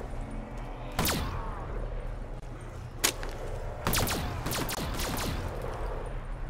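A gun fires several loud shots.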